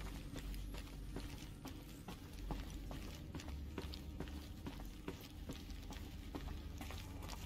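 Footsteps tap steadily on a metal walkway.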